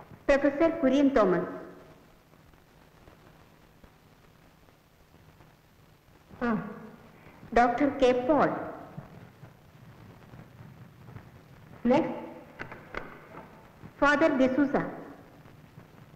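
A young woman speaks playfully in short bursts, with pauses between them.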